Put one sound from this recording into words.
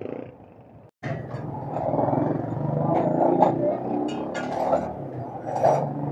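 Metal tools clink and knock on a bicycle.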